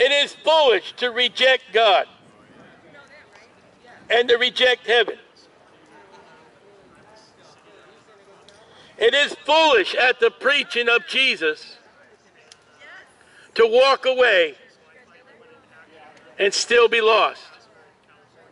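A man speaks loudly in short bursts close by.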